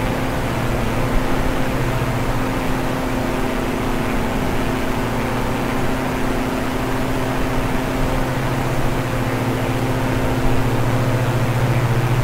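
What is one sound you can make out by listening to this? Propeller engines drone steadily.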